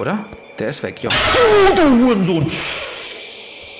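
A loud, harsh shriek blares suddenly and drops in pitch.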